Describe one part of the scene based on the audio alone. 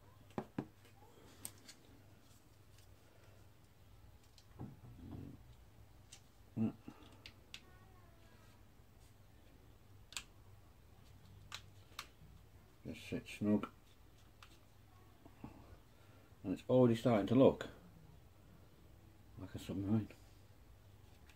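A small plastic tool clicks and taps as it is handled.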